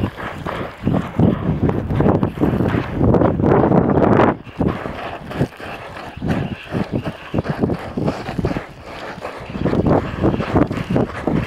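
Wind buffets loudly and gusts outdoors.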